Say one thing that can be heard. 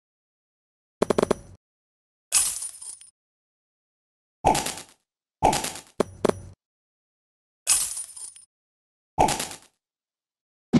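Short electronic game chimes and pops sound one after another.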